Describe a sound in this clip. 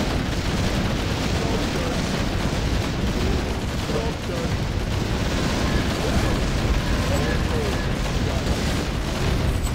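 Spells and weapons crash and burst in a noisy game battle.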